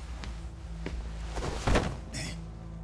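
A heavy punch lands with a thud.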